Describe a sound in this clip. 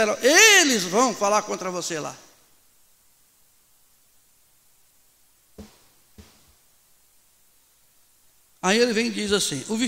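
A middle-aged man preaches loudly and passionately through a microphone in an echoing room.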